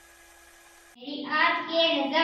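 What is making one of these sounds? A young boy speaks loudly into a microphone, reciting.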